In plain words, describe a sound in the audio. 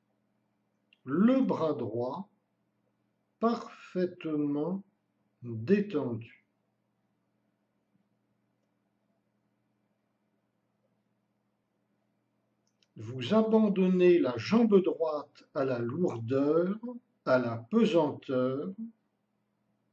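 An elderly man speaks calmly and slowly, close by, with long pauses.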